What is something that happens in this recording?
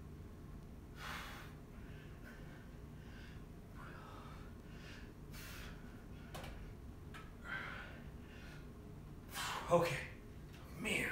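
A man exhales sharply and heavily as he exercises.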